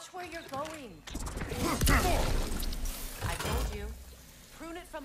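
A burst of magic crackles and whooshes.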